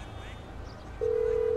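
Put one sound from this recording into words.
A phone call's ringing tone sounds.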